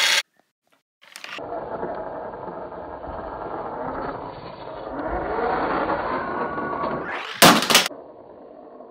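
A toy car plays a loud revving engine sound that rises in pitch.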